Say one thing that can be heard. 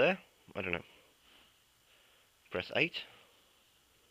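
A man's recorded voice speaks in short bursts through a tiny phone speaker.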